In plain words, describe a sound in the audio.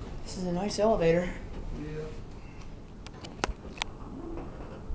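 Elevator doors slide shut with a thud.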